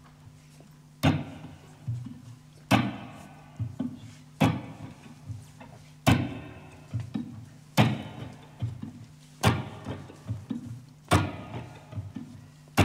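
Piano chords strike loudly at a slow, steady beat and ring out.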